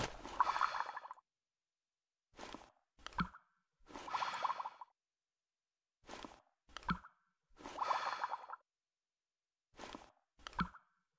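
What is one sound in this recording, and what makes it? Bubbles are blown with a bubbly gurgle in short repeated bursts.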